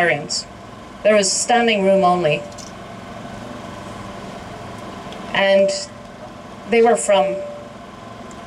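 A young woman speaks with emphasis into a microphone in short bursts with pauses.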